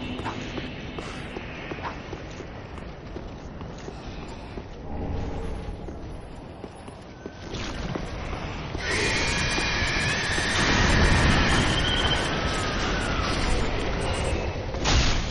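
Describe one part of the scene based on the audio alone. Armored footsteps clank over roof tiles.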